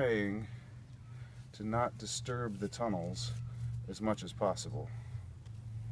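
A small trowel scrapes and digs into dry soil.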